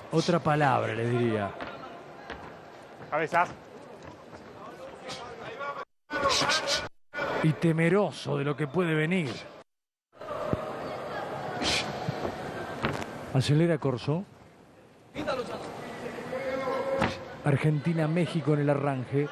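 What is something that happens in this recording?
A large crowd cheers and murmurs in a big arena.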